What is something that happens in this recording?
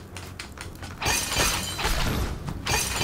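A sword swishes in a game.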